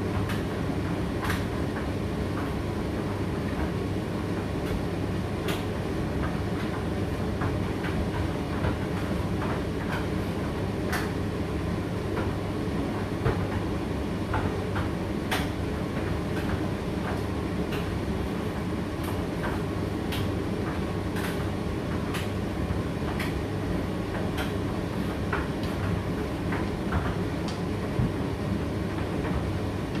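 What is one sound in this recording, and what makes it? A condenser tumble dryer hums as its drum turns.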